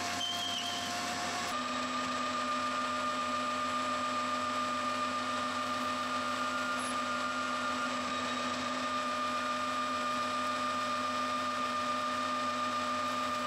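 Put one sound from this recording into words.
A metal lathe spins with a steady high whine.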